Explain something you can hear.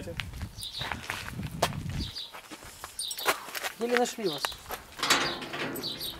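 A padlock rattles against a metal gate.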